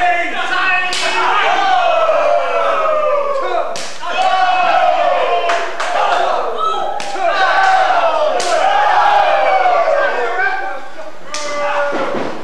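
Loud chest slaps crack sharply, several times.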